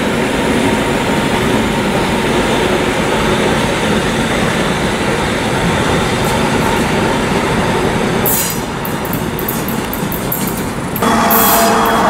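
A diesel locomotive rumbles steadily as it pulls away.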